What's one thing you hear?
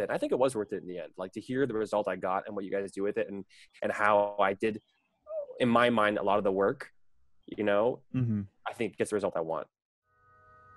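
A young man talks with animation through an online call.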